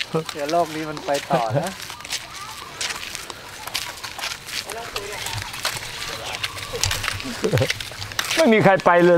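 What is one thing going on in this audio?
Footsteps scuff along a paved path.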